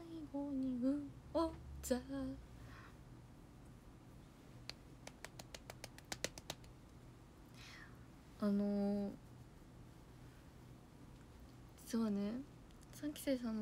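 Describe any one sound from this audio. A young woman speaks softly and close by.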